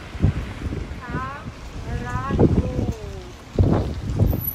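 A young woman speaks excitedly close by.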